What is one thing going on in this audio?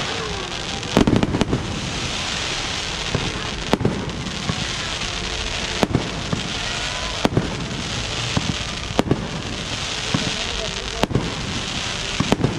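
Aerial firework shells burst with sharp bangs that echo outdoors.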